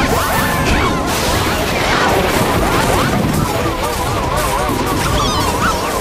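A video game kart engine hums and whines as the kart races.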